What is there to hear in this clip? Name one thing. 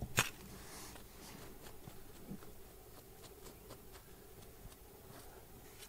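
Fingers brush and scratch through loose soil.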